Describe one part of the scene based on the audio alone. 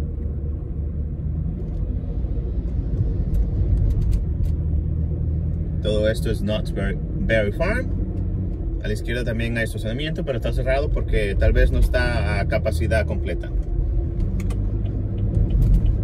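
A car drives along with a low, steady rumble of engine and tyres.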